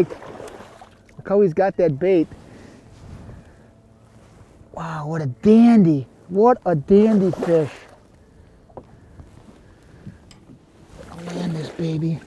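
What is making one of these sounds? A fish splashes and thrashes in the water.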